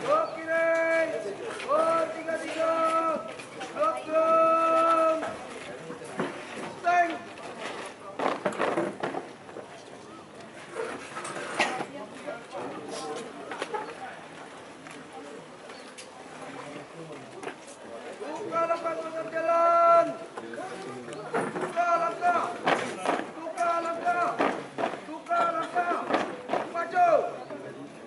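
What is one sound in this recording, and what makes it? A squad's boots stamp in step on asphalt outdoors.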